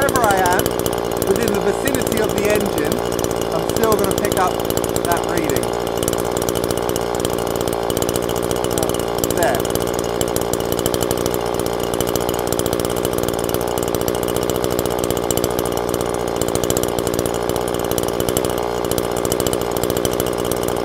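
A small two-stroke engine idles steadily close by.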